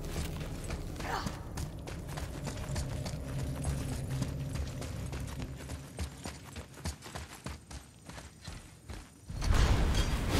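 Heavy footsteps run on stone.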